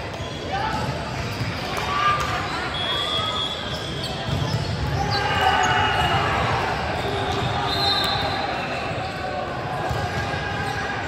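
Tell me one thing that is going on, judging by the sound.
Young men talk and call out across a large echoing gym.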